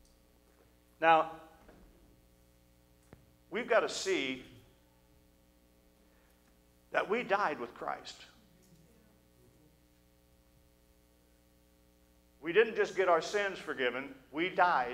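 A middle-aged man speaks emphatically into a microphone, with long pauses.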